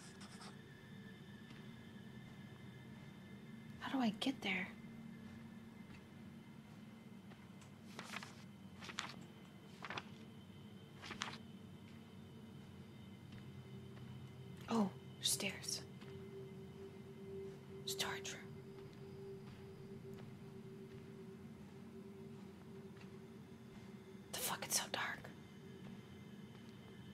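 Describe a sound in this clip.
A young woman speaks quietly into a close microphone.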